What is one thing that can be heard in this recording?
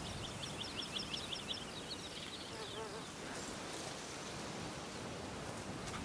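Wind rustles through pine branches outdoors.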